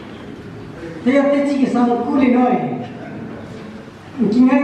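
A man speaks loudly through a loudspeaker.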